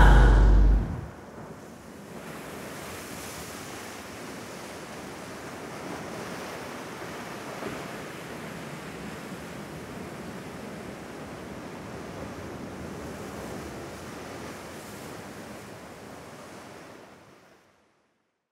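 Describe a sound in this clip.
Waves wash steadily against rocks along the shore.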